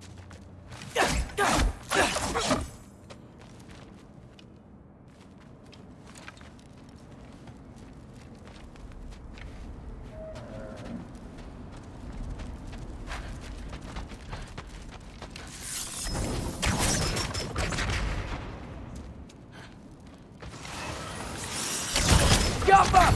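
A magic blast crackles and whooshes loudly.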